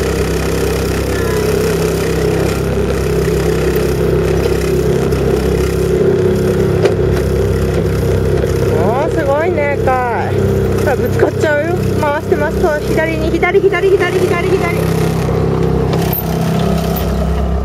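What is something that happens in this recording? A small motorboat's engine drones at a steady speed.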